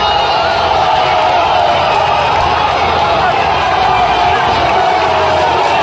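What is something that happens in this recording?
A middle-aged man shouts with joy close by.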